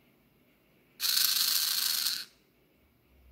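A small electric motor whirs briefly.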